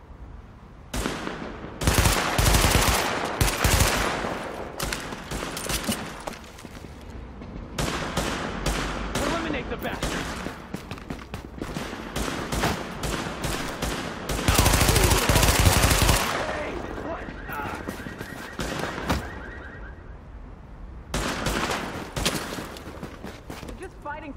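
Rifle fire crackles in rapid bursts.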